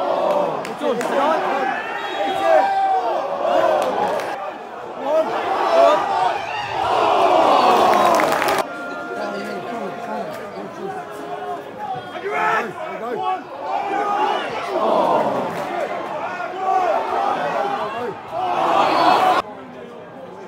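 Men close by shout and cheer.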